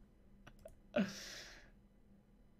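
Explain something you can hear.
A young man laughs briefly into a microphone.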